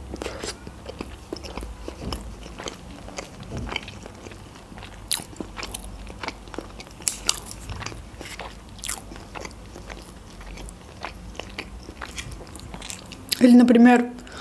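A young woman chews food with wet, crunchy mouth sounds close to a microphone.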